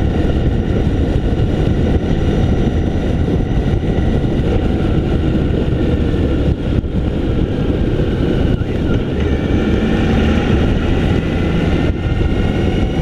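A motorcycle engine drones steadily close by.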